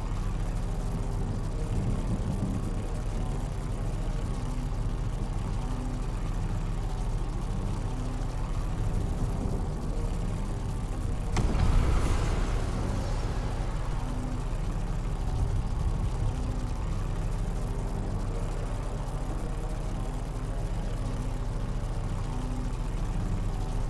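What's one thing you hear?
A hollow ball rumbles steadily as it rolls over grass.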